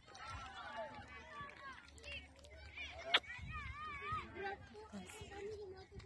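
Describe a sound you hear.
Young children talk and call out nearby outdoors.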